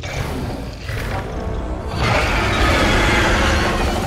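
A dragon breathes a roaring stream of fire.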